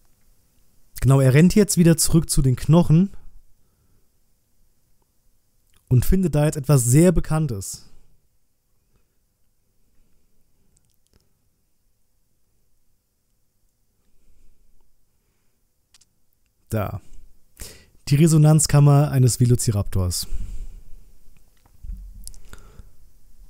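A man speaks casually and close into a microphone, in short bursts with pauses.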